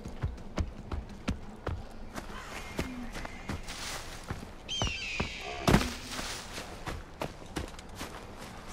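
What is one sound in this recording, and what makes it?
Footsteps rustle quickly through grass and leaves.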